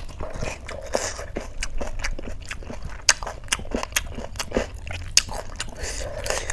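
A woman chews crunchy food close to a microphone.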